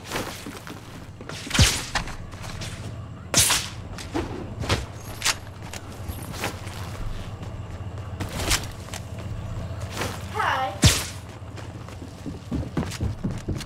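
Web lines shoot out with sharp whooshes.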